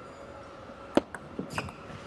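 A table tennis ball is struck sharply by a paddle.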